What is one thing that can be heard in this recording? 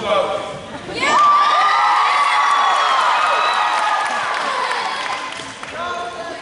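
A crowd of children cheers and shouts loudly.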